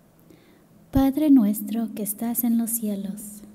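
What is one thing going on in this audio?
A young woman reads out aloud into a microphone in an echoing hall.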